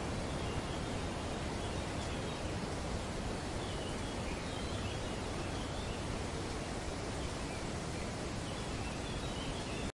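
Palm fronds rustle in the breeze.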